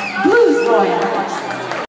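A woman sings into a microphone over the band.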